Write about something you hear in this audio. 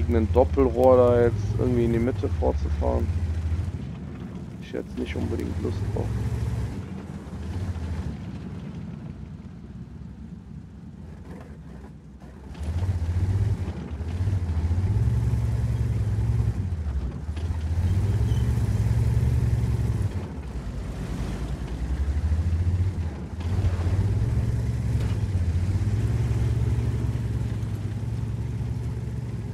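A heavy tank engine rumbles and roars in waves as the tank drives.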